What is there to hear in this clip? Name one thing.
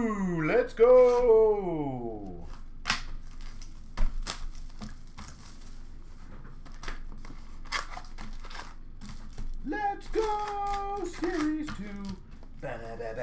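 A cardboard box knocks and clatters as hands move it about.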